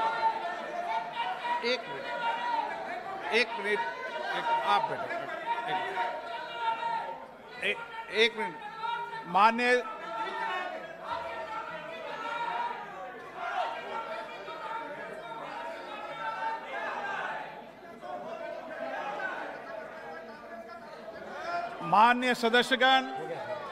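Many people murmur and call out in the background.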